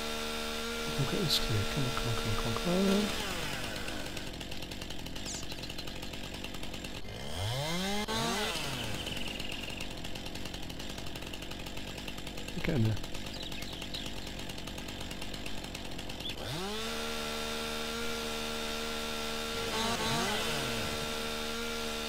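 A chainsaw revs up and down sharply.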